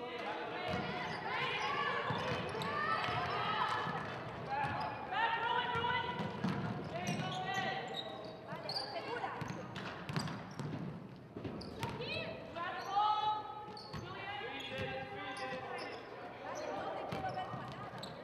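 Young women shout and call out across a large echoing gym.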